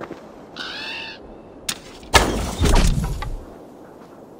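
A bow is drawn and an arrow is shot with a sharp twang.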